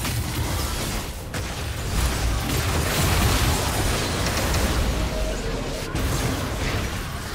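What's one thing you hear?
Spell and combat sound effects crackle and burst in a fast game fight.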